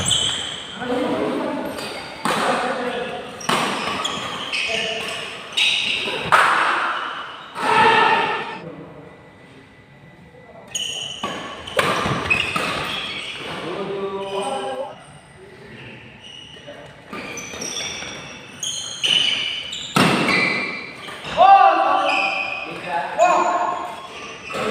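Badminton rackets hit a shuttlecock in a large echoing hall.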